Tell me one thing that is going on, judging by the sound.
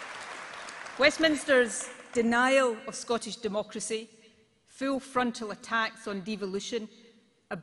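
A middle-aged woman speaks firmly into a microphone over loudspeakers.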